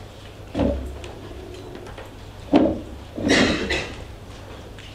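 Equipment knocks and bumps as it is handled nearby.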